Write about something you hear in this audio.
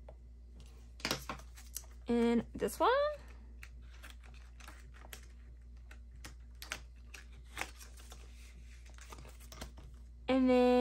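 Paper cards rustle and tap as hands handle them.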